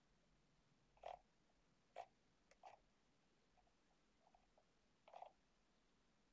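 Keys click and clatter on a computer keyboard.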